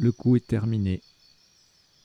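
A man speaks briefly and clearly into a microphone.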